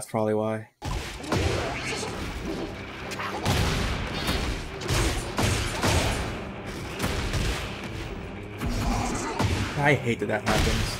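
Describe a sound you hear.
Fighters land punches and kicks with heavy thuds.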